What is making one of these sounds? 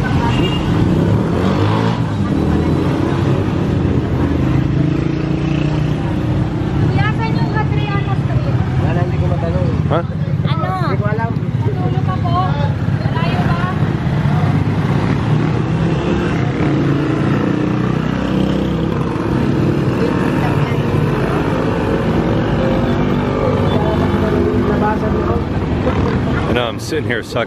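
Motorcycle engines rumble and buzz close by in steady street traffic.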